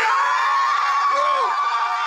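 A woman screams in terror.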